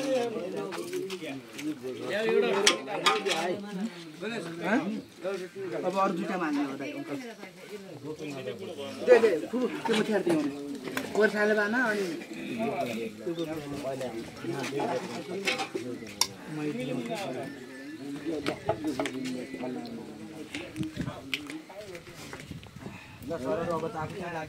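Several men talk casually nearby, outdoors.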